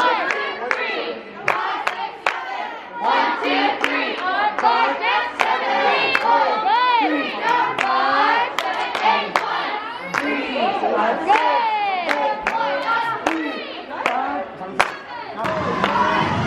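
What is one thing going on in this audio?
Hands clap sharply.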